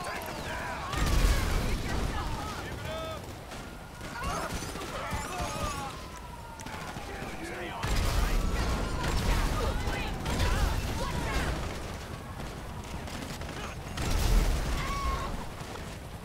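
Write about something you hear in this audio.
Loud gunshots boom and echo.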